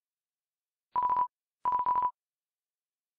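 Short electronic beeps blip as game dialogue text types out.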